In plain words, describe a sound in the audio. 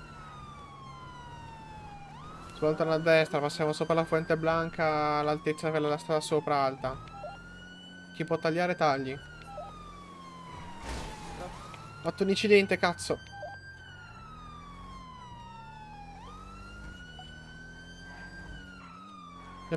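A police siren wails steadily, rising and falling in pitch.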